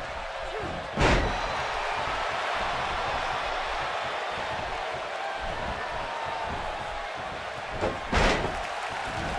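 Heavy bodies slam down onto a wrestling mat with loud thuds.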